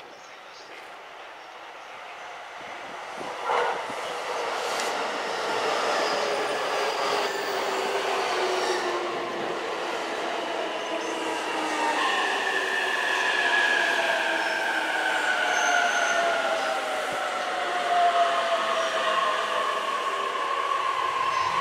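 A train rolls past close by.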